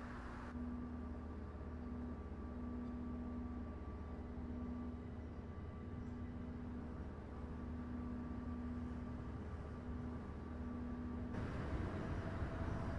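A bus engine idles with a low, steady rumble.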